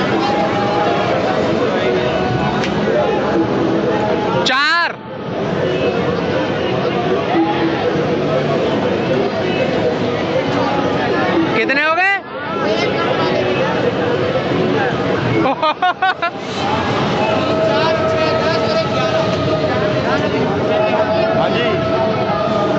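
A crowd of people chatters steadily all around.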